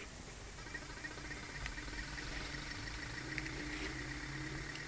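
A small pulse motor spins, giving off rapid, regular ticking pulses.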